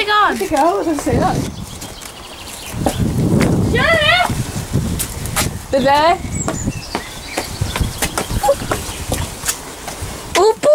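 Footsteps scuff and tap on a hard path.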